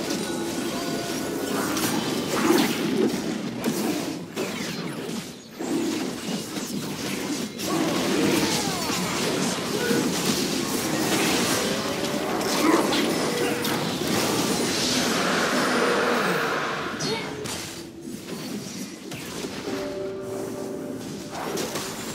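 Magic spells whoosh and crackle in a busy video game battle.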